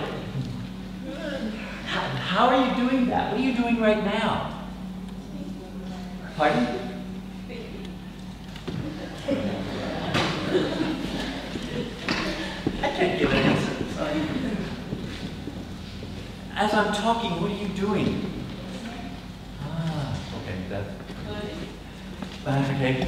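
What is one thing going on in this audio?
A middle-aged man speaks with animation in a large echoing hall.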